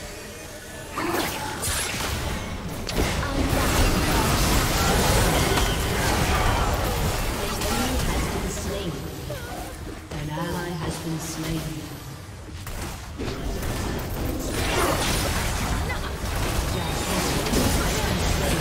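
Game abilities hit with sharp impacts and bursts.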